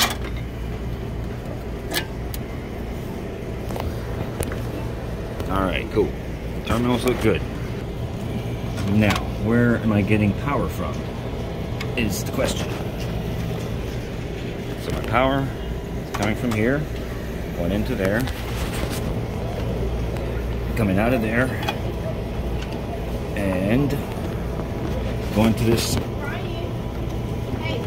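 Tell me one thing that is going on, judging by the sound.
A refrigeration unit hums steadily and low.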